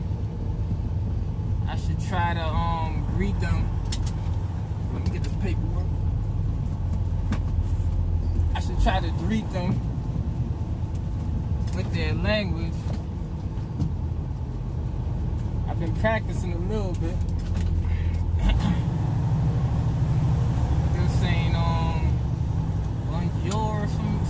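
A car engine hums steadily from inside the car as it rolls along.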